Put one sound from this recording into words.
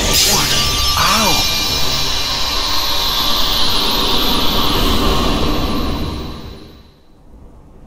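A magical blast roars with a bright shimmering rush.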